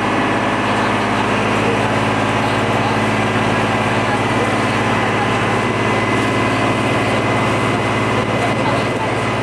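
A boat engine hums steadily close by.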